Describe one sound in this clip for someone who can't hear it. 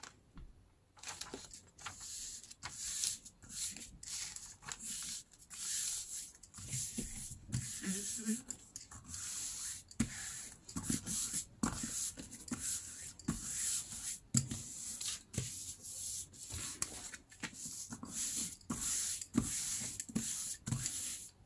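Hands rub and smooth paper with brisk swishing strokes.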